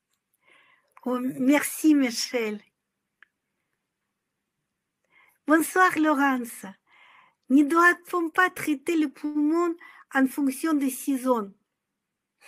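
A middle-aged woman speaks calmly and warmly, close to a microphone, with pauses.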